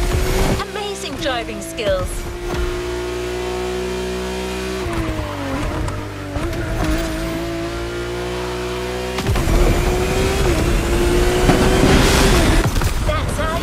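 A sports car engine roars steadily at high speed, its pitch dipping briefly as it shifts gears.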